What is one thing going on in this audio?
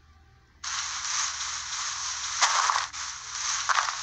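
Blocks crunch repeatedly as they are dug.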